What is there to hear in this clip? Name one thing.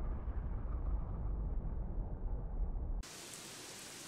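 A magic spell hums with a deep, loud rumble, then cuts off.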